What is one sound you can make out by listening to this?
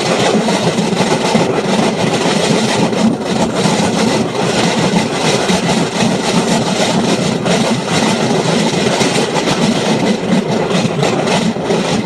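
A motorbike engine roars steadily at speed.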